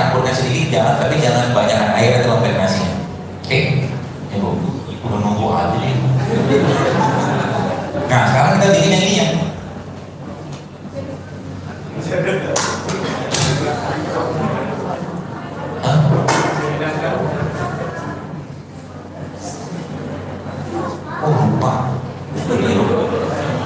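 A man speaks through a microphone with animation, heard over loudspeakers in an echoing room.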